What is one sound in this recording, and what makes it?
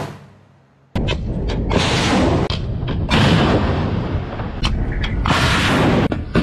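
A missile launches with a loud rushing roar.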